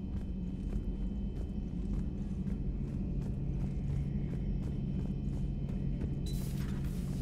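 Footsteps clang quickly on a metal floor.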